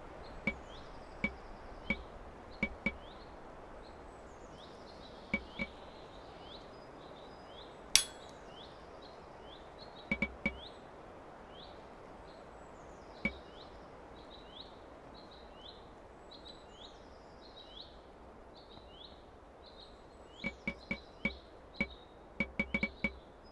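Soft menu clicks tick now and then, in quick bursts.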